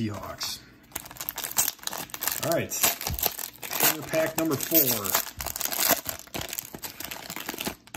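A plastic wrapper crinkles and tears as it is pulled open.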